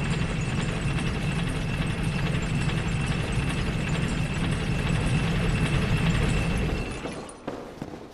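A lever mechanism grinds and rumbles loudly.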